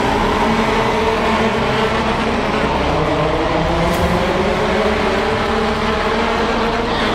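Racing car engines roar loudly as the cars speed past.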